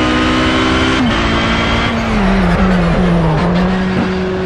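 A race car engine drops in pitch as the gears shift down under braking.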